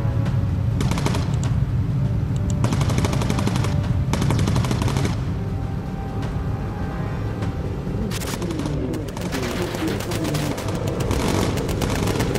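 The piston engines of a four-engine bomber drone.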